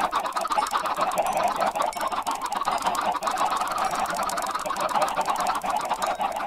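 Many game chickens cluck in a dense, overlapping chorus.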